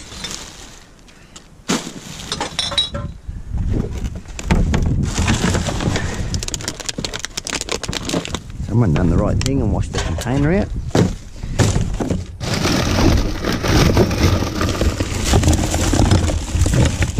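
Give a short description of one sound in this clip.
Plastic bags and wrappers rustle and crinkle as gloved hands sort through rubbish.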